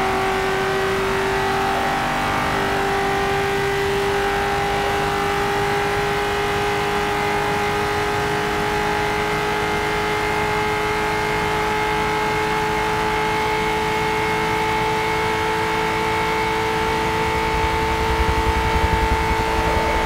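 A racing car engine drones at high speed, its pitch slowly rising.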